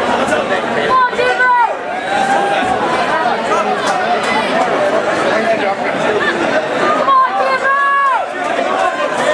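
Spectators shout loudly.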